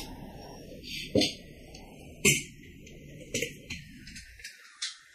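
Plastic tiles slide and rattle across a tabletop.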